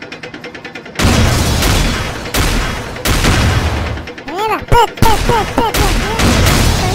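A video game tank cannon fires with a booming blast.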